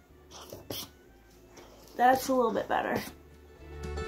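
A foam soap pump squirts.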